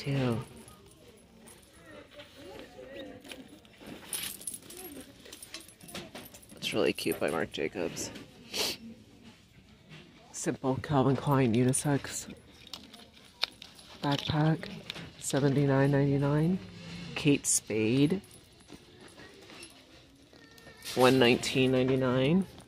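A hand rustles and shifts hanging bags.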